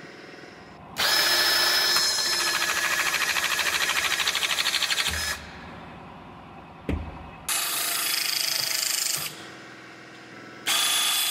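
A power rivet tool whirs loudly in several bursts.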